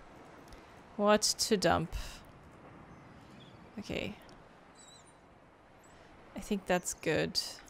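A young woman speaks briefly and casually into a close microphone.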